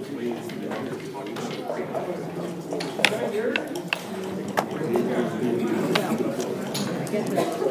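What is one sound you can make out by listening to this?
Game pieces click and clack against a wooden board.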